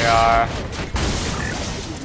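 An electric blast crackles.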